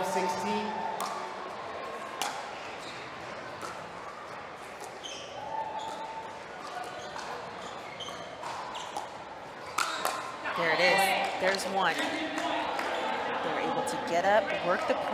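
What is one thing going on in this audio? A paddle strikes a plastic ball with sharp hollow pops.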